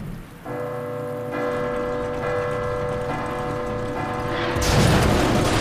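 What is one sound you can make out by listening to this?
A large bell rings with a deep, lingering tone.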